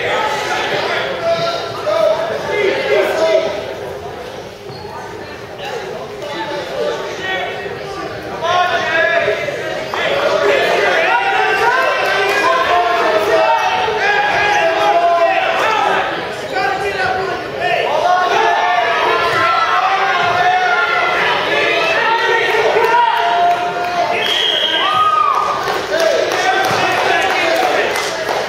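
Spectators shout and cheer in an echoing hall.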